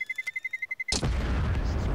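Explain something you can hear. A bomb beeps rapidly.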